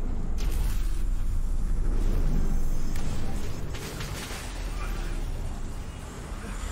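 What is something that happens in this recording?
A young man speaks quietly into a microphone.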